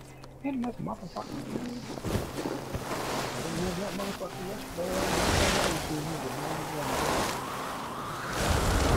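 A snowboard hisses and scrapes across powder snow.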